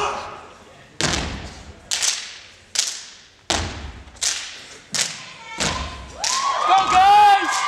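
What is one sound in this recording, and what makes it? Feet stomp in rhythm on a wooden stage.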